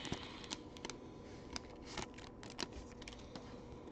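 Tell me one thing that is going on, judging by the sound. Hands tear open a foil card pack with sharp crinkles.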